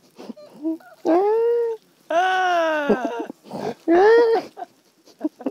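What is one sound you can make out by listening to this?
A young man laughs loudly and shrilly.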